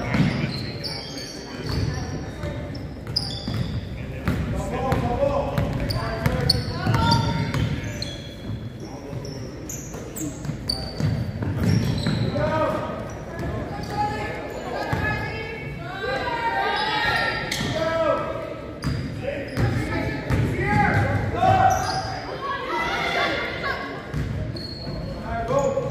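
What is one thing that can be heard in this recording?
A basketball bounces on a wooden floor in an echoing gym.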